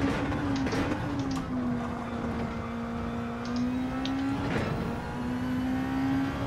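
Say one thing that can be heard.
A racing car engine drones steadily at high revs, shifting pitch slightly through gear changes.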